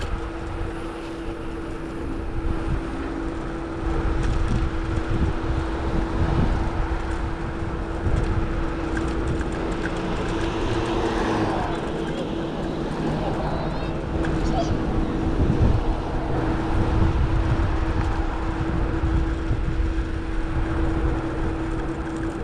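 A bicycle hums with a steady whirring tone as it rolls along the road.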